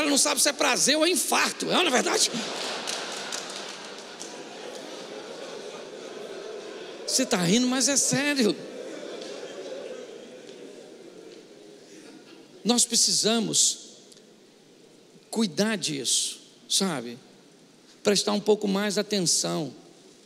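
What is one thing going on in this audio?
A middle-aged man speaks with animation through a microphone, with pauses.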